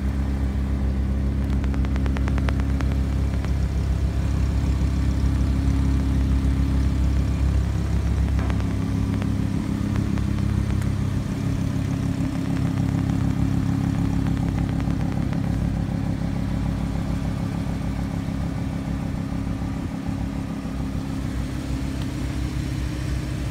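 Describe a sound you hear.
A sports car engine idles with a deep, steady rumble from the exhaust.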